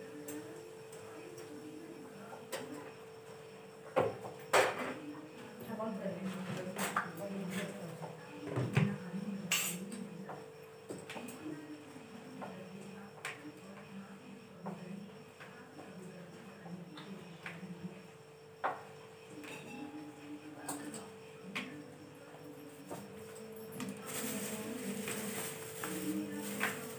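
Utensils clink and knock against pots and bowls.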